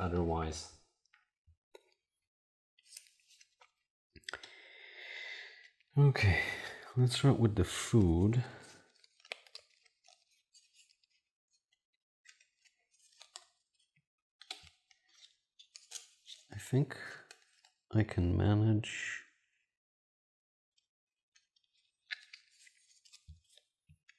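Game pieces and cards click and rattle on a table.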